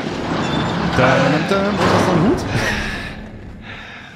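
A man laughs loudly into a headset microphone.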